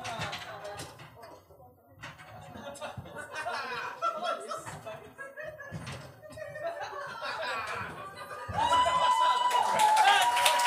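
A wooden table knocks and scrapes on a floor.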